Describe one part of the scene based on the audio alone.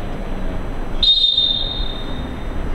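A referee's whistle blows once, short and sharp.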